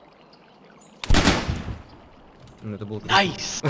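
Gunshots ring out sharply.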